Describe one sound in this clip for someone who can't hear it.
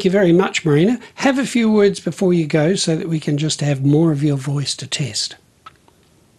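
An elderly man speaks calmly and clearly, close to a microphone.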